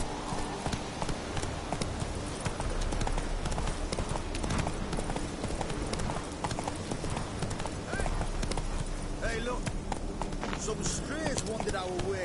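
A horse gallops, its hooves thudding quickly and steadily.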